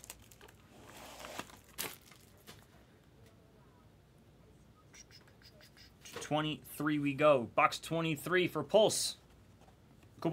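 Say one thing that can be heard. Cardboard boxes slide and knock as hands handle them.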